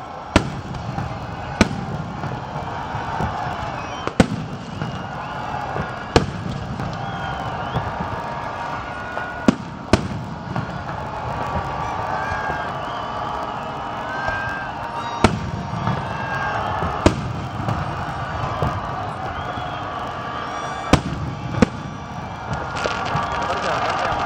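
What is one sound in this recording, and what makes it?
Fireworks crackle and fizz after bursting.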